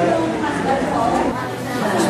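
A woman talks softly nearby.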